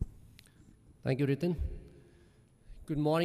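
A second man speaks calmly through a microphone.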